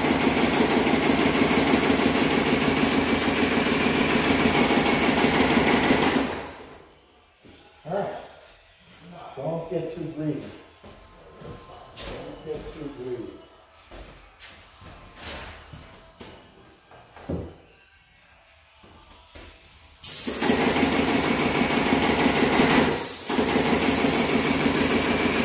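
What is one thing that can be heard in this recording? A paint sprayer hisses loudly and steadily, stopping for a while and then starting again.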